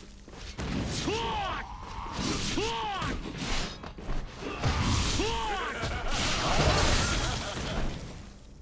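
Blades swish and slash through the air.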